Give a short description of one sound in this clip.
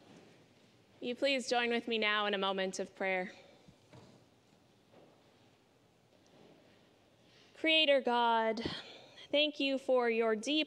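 A woman speaks clearly through a microphone in a large echoing hall.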